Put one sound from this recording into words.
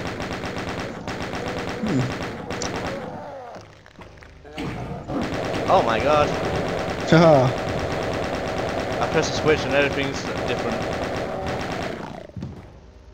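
A rapid-fire gun fires in long, fast bursts.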